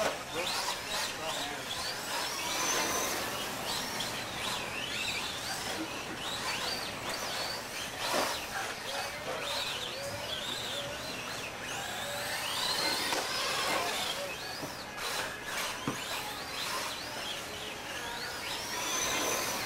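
Small tyres scrape over loose dirt.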